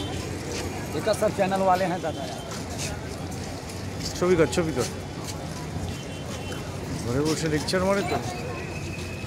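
A man nearby talks loudly.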